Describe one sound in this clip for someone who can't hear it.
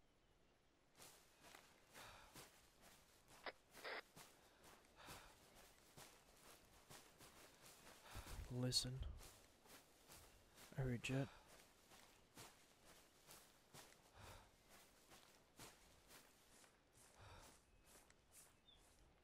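Footsteps rustle through dry leaves and undergrowth at a steady walking pace.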